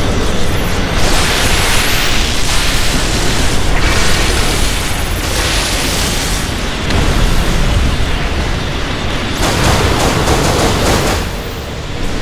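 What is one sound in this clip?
Laser beams whoosh and zap in bursts.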